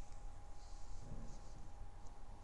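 A young woman murmurs softly into a close microphone.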